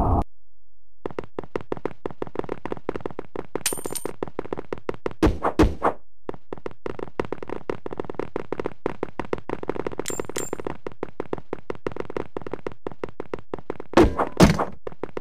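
Quick footsteps patter across a hard floor.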